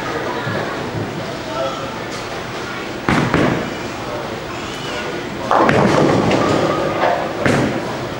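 A bowling ball rumbles down a wooden lane.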